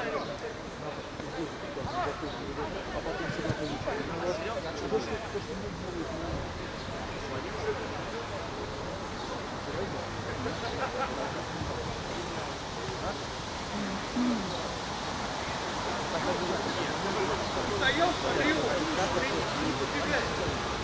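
Young men chatter nearby in the open air.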